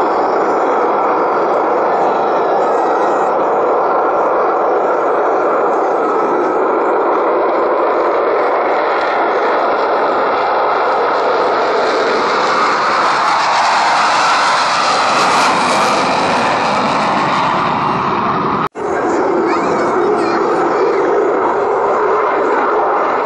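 Jet engines roar loudly during takeoff.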